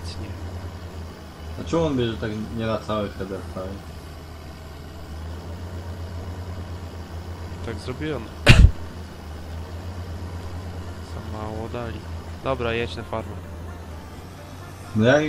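A tractor engine hums steadily at low pitch.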